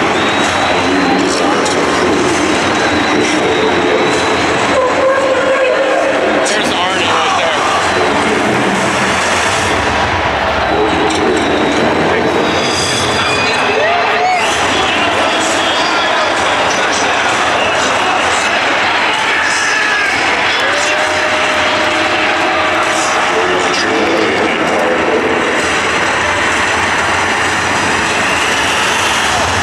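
A large crowd cheers and roars loudly in a huge echoing stadium.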